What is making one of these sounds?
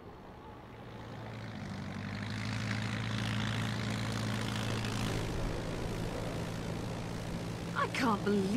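A plane's propeller engine drones loudly overhead.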